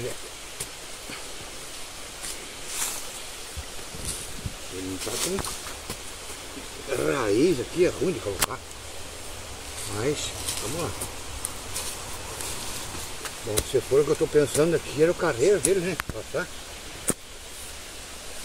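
A small hoe chops and scrapes into soil.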